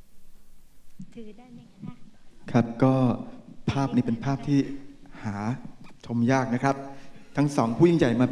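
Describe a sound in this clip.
An elderly woman speaks through a microphone over loudspeakers.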